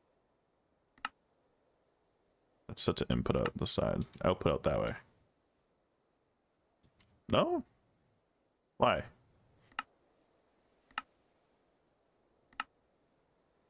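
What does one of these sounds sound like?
Short soft clicks sound now and then as game menus open and switch.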